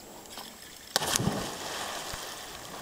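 A person plunges into water with a loud splash.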